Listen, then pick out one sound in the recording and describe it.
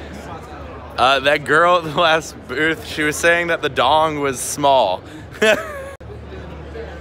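A young man talks and laughs loudly, close to the microphone.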